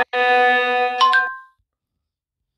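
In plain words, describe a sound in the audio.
A short bright chime rings.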